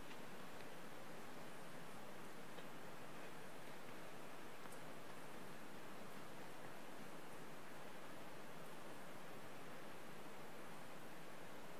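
Footsteps tap softly on a hard floor in a large echoing hall.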